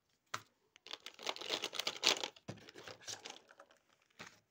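Plastic markers rattle and clatter in a plastic basket.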